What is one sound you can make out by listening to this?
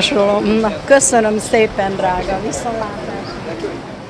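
An elderly woman speaks with animation close to a microphone.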